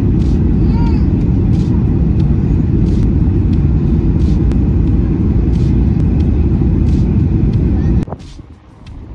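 A jet engine roars loudly inside a plane cabin.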